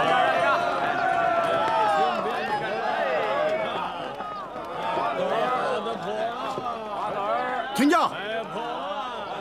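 A crowd of people chatters and calls out all around, outdoors.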